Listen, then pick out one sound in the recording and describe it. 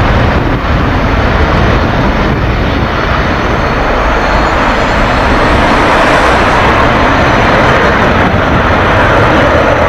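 A jet engine roars loudly through a loudspeaker.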